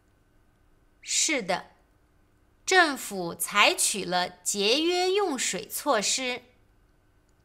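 A young woman answers calmly and clearly.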